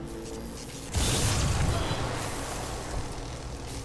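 Electricity zaps with a sharp, loud crackle.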